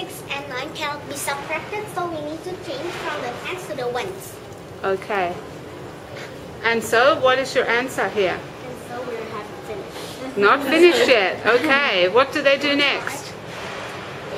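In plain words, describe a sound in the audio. A girl speaks nearby.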